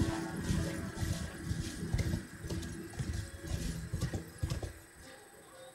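A horse gallops over rough ground, hooves thudding.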